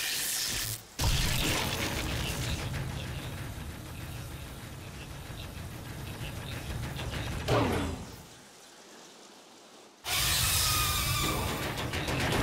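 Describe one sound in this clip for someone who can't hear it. A huge machine rumbles low and heavy.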